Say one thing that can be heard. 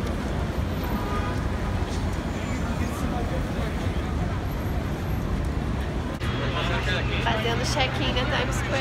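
A busy crowd murmurs outdoors with street noise.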